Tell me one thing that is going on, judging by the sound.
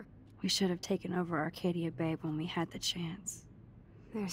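A young woman speaks softly and sadly, close by.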